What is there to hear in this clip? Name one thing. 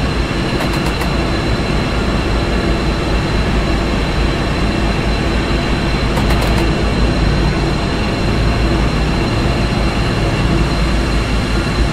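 A train engine rumbles steadily as the train rolls along the track.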